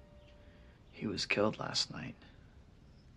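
A young man speaks quietly and calmly.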